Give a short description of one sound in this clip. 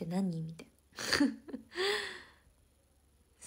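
A young woman laughs briefly, close to the microphone.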